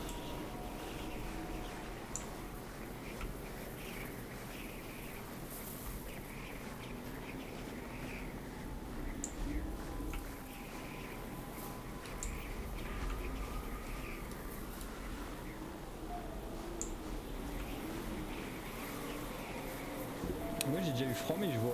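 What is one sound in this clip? A torch flame crackles and roars steadily.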